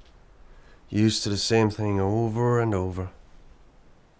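A middle-aged man speaks close by.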